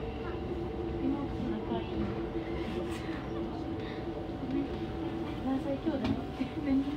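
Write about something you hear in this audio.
A train hums and rumbles steadily as it rolls slowly along.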